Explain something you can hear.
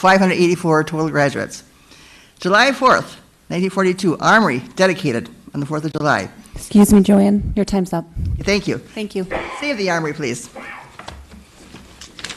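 An elderly woman reads out calmly into a microphone.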